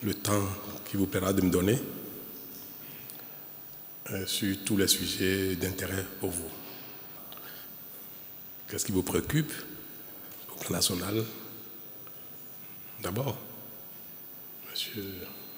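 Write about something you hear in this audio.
A man speaks calmly into a microphone in a large echoing hall, with pauses between phrases.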